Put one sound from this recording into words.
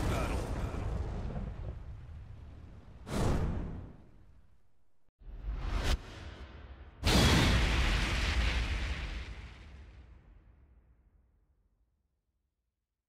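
A deep whooshing boom bursts out and slowly fades.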